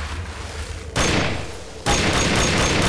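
An explosion booms.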